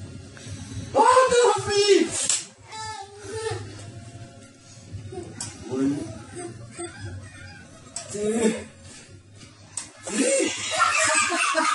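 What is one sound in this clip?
A young boy squeals and laughs excitedly nearby.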